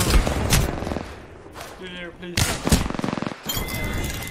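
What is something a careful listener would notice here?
Gunshots fire in quick, loud bursts.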